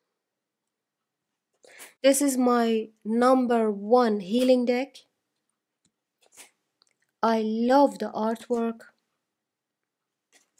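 Stiff cards slide and flick softly as they are shuffled through by hand.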